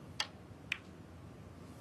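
Snooker balls click sharply as a cue strikes.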